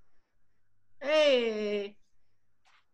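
A woman calls out a long, high-pitched greeting over an online call.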